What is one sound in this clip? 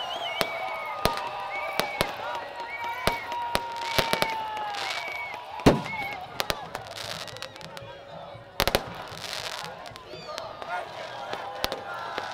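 Fireworks pop and crackle overhead.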